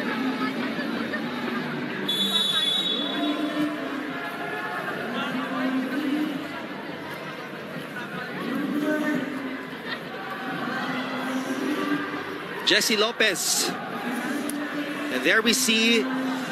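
A large crowd cheers and chatters throughout in a big echoing arena.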